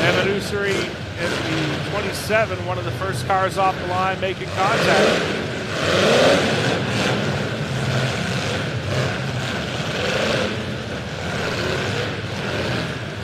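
A crowd cheers in a large echoing arena.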